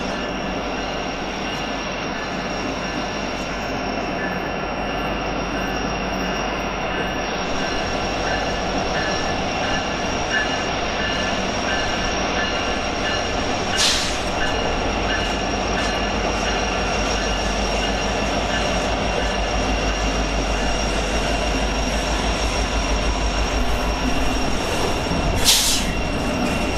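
A diesel locomotive engine rumbles steadily as a train approaches and passes close by.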